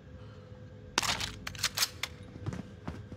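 A gun clicks and rattles as it is picked up.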